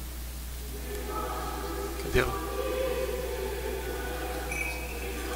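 A man chants in a large, echoing hall.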